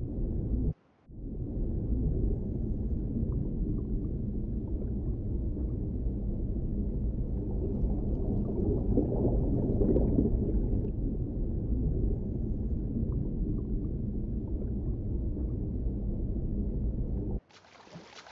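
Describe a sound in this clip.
Muffled water rumbles steadily underwater.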